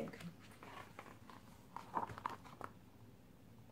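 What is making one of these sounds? Book pages rustle as a book is turned around.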